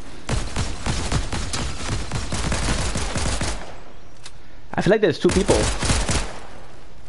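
Rapid gunfire cracks in a video game.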